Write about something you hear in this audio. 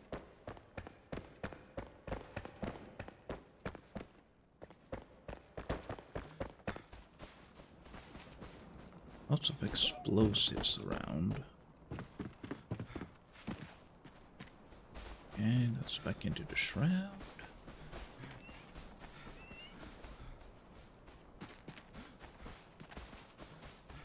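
Footsteps tread quickly and steadily.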